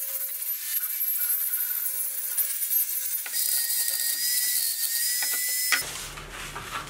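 An angle grinder whines loudly, sanding a hard surface.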